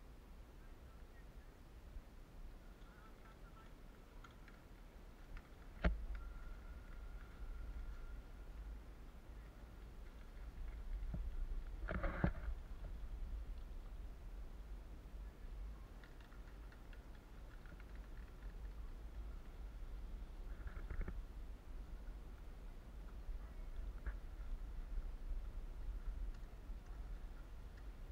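Bicycle tyres crunch over a dirt track.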